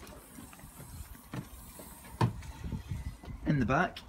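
A car's tailgate clicks and swings open.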